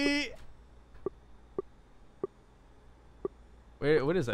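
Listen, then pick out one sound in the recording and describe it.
A video game makes short soft clicking sounds.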